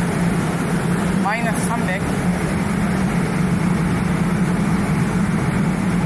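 A train hums steadily at a platform.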